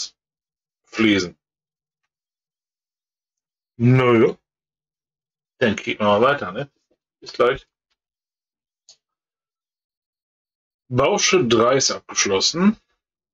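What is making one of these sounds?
A middle-aged man speaks calmly into a nearby microphone, in short bursts with pauses.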